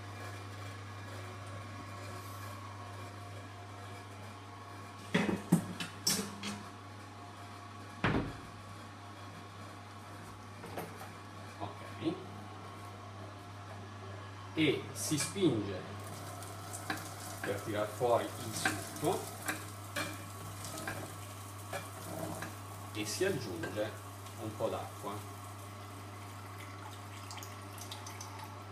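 An electric juicer motor hums steadily.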